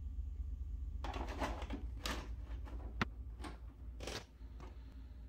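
Plastic clicks and knocks sharply as an old television is handled.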